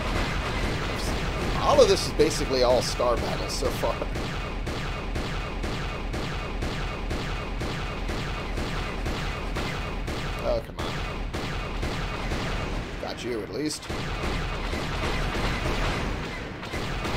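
Laser cannons fire in rapid, even bursts.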